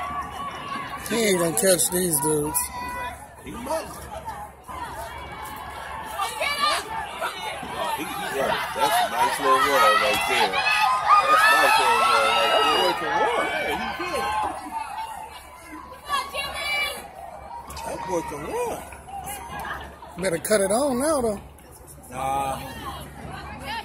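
A crowd of spectators cheers and shouts excitedly nearby outdoors.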